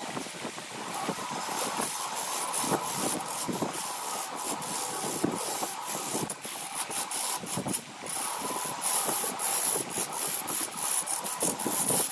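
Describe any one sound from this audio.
A gouge scrapes and cuts into spinning wood on a lathe.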